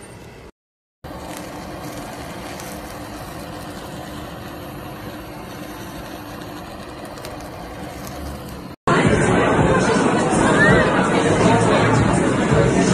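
A blowtorch roars steadily.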